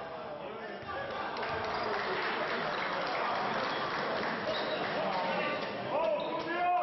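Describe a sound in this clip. A crowd murmurs and cheers in an echoing hall.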